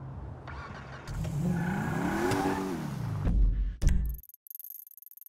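A car engine starts and revs up loudly.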